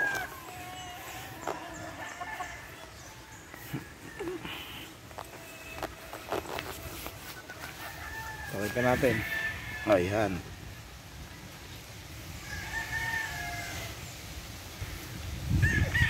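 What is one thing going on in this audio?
Hens and roosters cluck and chirp softly all around.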